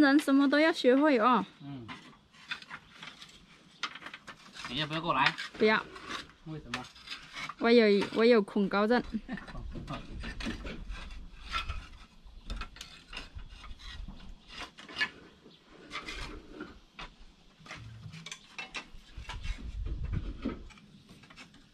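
Clay roof tiles clink and clatter as they are handled.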